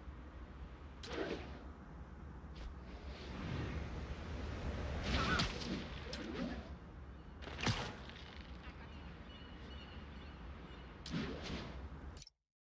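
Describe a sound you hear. Web lines shoot out with sharp whooshes.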